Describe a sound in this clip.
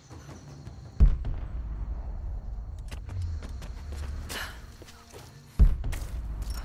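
A climber lands on the ground with a heavy thud.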